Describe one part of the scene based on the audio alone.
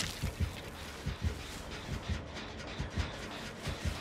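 Footsteps crunch quickly over dry leaves.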